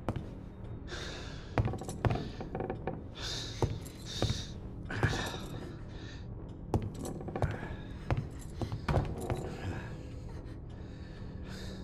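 Soft footsteps creep slowly across a wooden floor.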